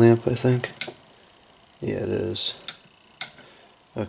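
A lamp switch clicks.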